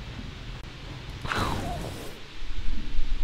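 An energy weapon fires with a sharp, crackling blast.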